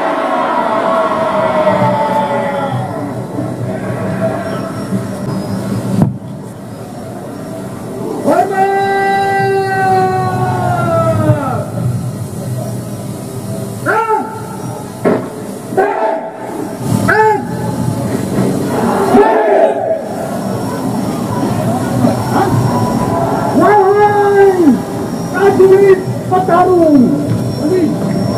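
A group of young men chant and shout in unison outdoors.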